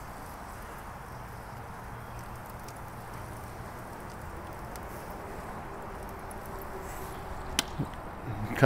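Metal tongs scrape and clink against a grill grate.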